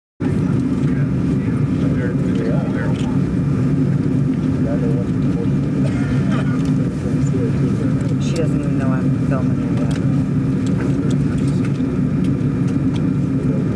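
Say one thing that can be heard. A woman speaks quietly nearby.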